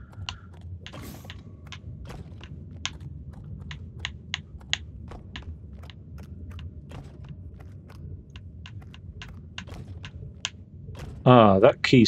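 A mechanical weapon clicks and ticks in a steady rhythm.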